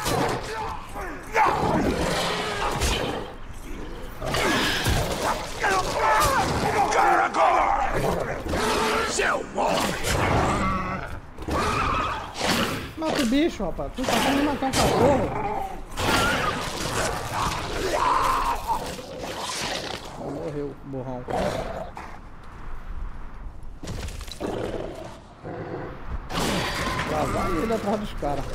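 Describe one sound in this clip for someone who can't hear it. A middle-aged man talks with animation into a microphone, close by.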